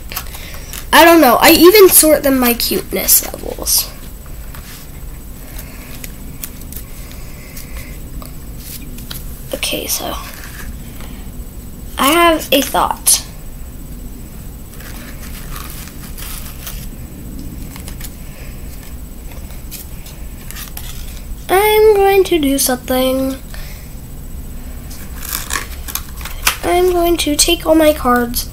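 A young girl speaks close by, in short bursts with pauses.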